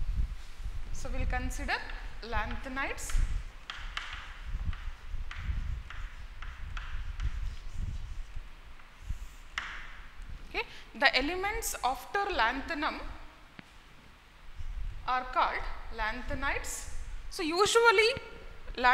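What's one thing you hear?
A woman speaks calmly and clearly, as if teaching, close to a microphone.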